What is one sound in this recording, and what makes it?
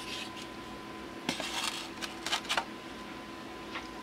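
A plastic tray is set down into a plastic tub with a hollow knock and rustle.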